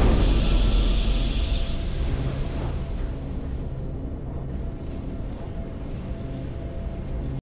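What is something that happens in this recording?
A triumphant fanfare swells and then settles into a soft, steady tune.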